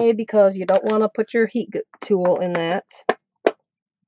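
A plastic lid clicks onto a tub.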